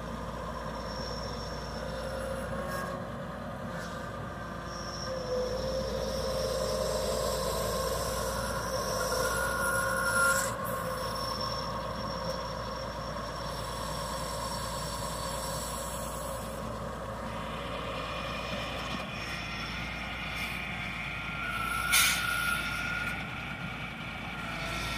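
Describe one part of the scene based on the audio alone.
Loose dirt scrapes and crumbles under a grader blade.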